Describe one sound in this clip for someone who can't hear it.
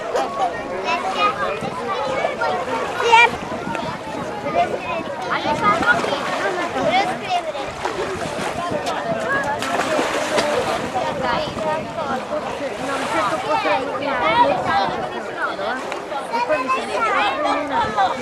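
Many children and adults chatter and shout nearby, outdoors in the open air.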